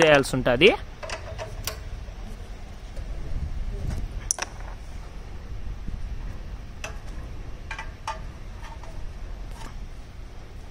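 A wrench clicks and taps against metal engine parts.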